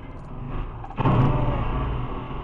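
A heavy truck topples and crashes onto its side with a loud bang.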